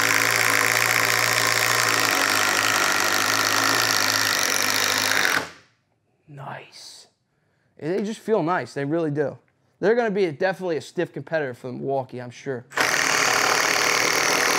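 A cordless drill whirs steadily.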